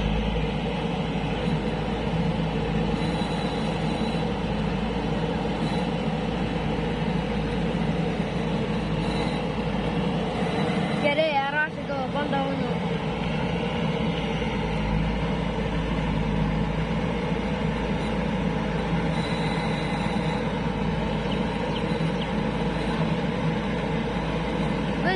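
A tractor engine idles steadily nearby.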